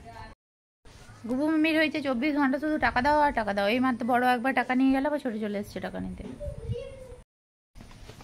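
A woman speaks close by in a steady, melodic voice.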